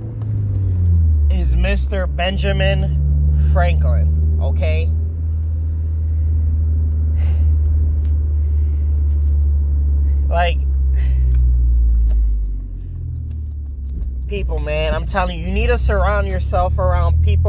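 A car engine hums low and steady inside the cabin.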